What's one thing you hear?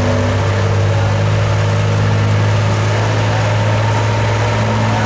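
A tractor engine roars loudly and steadily.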